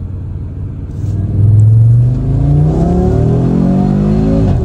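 A car engine roars and revs higher as the car speeds up.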